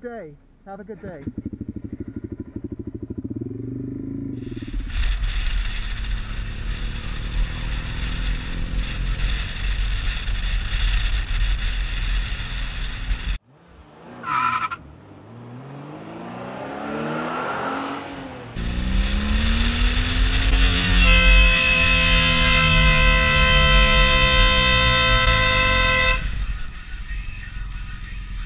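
A motorcycle engine rumbles close by, rising and falling in pitch as it revs.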